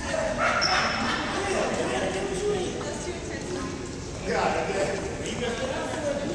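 Young people shout and call out in a large echoing gym.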